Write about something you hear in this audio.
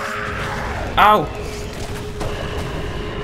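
A club strikes flesh with a heavy, wet thud.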